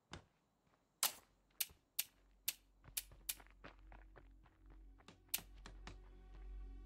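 Soft interface clicks sound as menu selections change.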